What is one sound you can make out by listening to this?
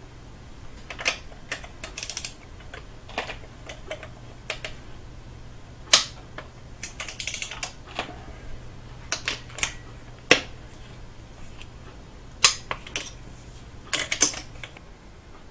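Metal tools clink and clatter against an engine.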